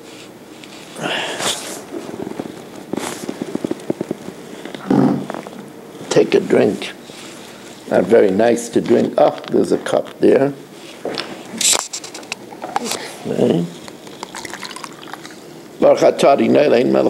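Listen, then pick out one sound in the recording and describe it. An elderly man speaks calmly and close by, in a deep voice.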